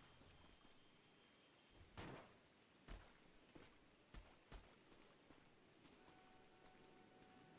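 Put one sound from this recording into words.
Footsteps thud on soft dirt as someone runs.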